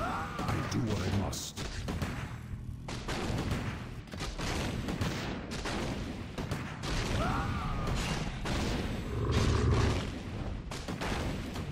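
Weapons clash and strike repeatedly.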